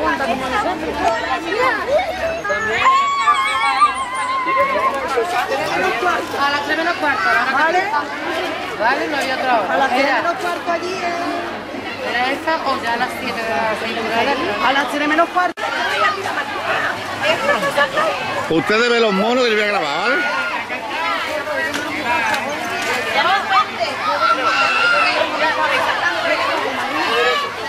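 A crowd of women and children chatter outdoors.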